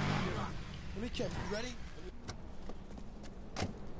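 A car door opens.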